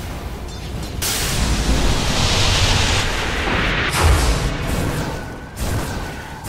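Magic spells burst and whoosh in a fantasy battle.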